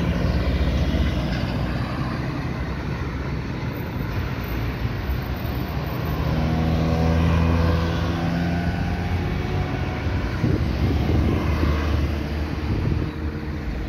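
Cars drive past on asphalt outdoors.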